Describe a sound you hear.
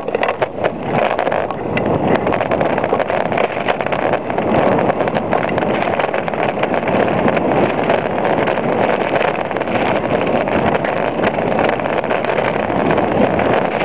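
A bicycle's frame and parts rattle over bumps.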